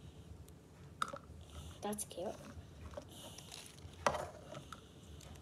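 Plastic lids click and tap on a table.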